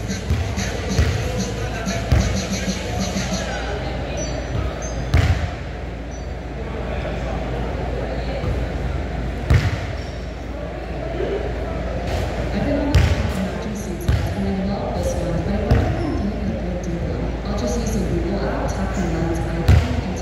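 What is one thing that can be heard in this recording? A basketball bounces loudly on a wooden floor, echoing in a large hall.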